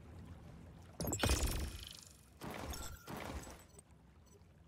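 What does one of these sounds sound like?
A game menu plays short chiming and whooshing effects.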